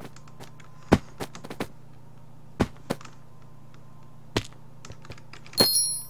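Springy bounce sounds play as a game character jumps on trampolines.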